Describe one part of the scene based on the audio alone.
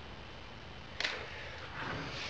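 A small object clicks down onto a wooden table.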